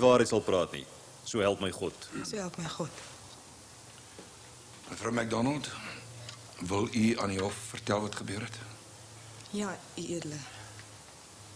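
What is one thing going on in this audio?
A man speaks firmly and with pauses.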